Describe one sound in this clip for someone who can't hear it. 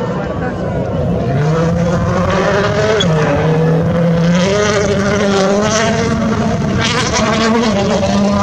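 Gravel sprays and crunches under a rally car's tyres.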